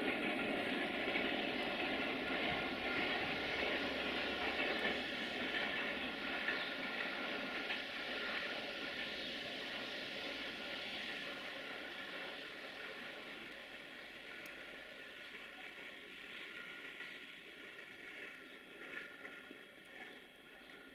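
Wind blows steadily through falling snow outdoors.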